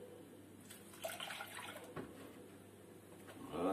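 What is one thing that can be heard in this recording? Milk pours from a jug and splashes into a metal pot.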